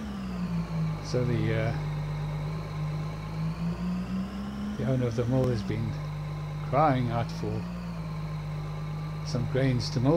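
A diesel combine harvester engine drones as the machine drives along.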